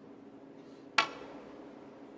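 A cue strikes a ball with a sharp click.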